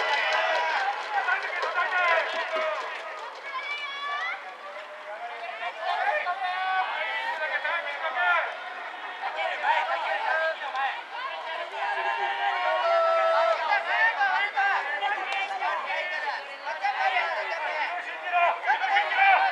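A crowd of spectators chants and cheers at a distance, outdoors.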